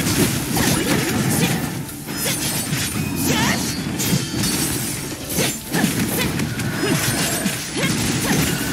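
Sword slashes and electric zaps crackle rapidly in a game battle.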